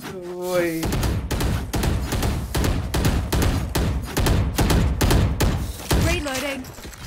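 Rapid gunshots ring out from a video game.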